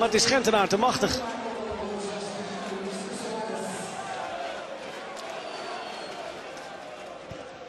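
A large crowd roars and cheers in an open stadium.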